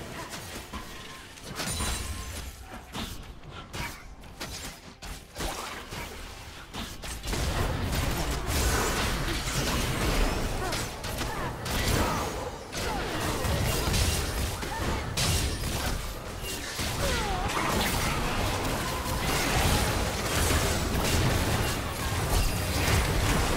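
Fantasy spell effects whoosh, crackle and burst in a busy fight.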